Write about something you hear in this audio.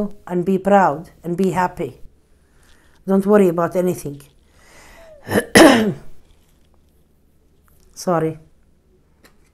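A middle-aged woman speaks calmly and close into a clip-on microphone.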